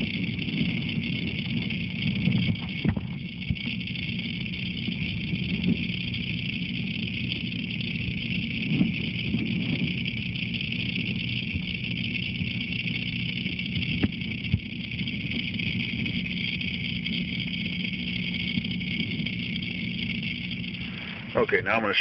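A water pump hums steadily underwater.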